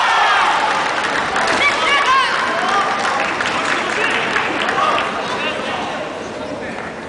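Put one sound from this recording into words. A crowd of spectators murmurs and chatters in a large hall.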